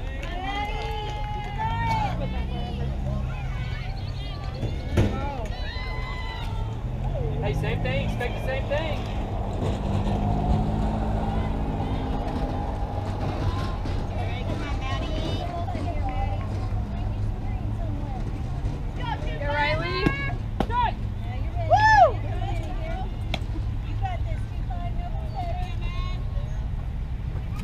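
Girls and women shout and cheer with animation nearby outdoors.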